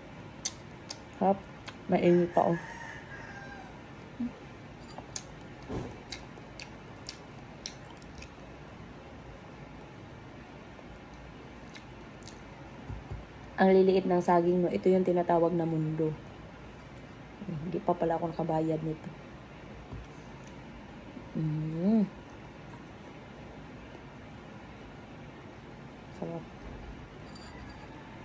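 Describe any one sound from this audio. A young woman chews noisily on food.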